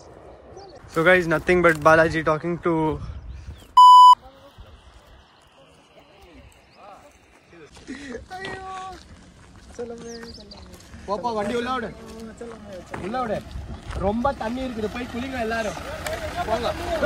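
A young man talks outdoors.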